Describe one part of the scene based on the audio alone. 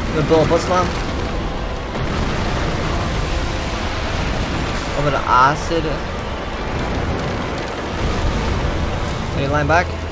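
A huge creature rumbles deeply.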